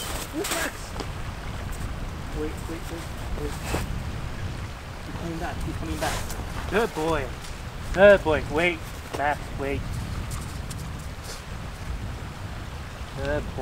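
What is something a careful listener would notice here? Boots crunch through snow.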